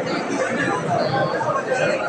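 A man speaks to the crowd nearby, loud and clear.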